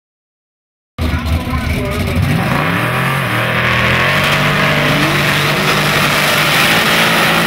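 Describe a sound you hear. A turbocharged drag-racing Mustang engine revs hard.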